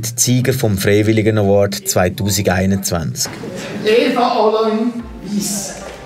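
An elderly man speaks with animation through a microphone in an echoing hall.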